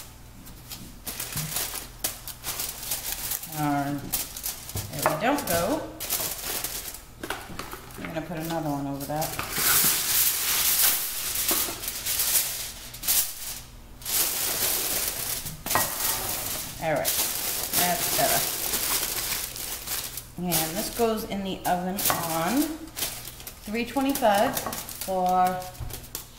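Aluminium foil crinkles and rustles close by.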